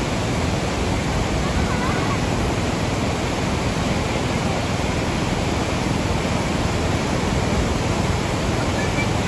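A powerful waterfall roars steadily close by.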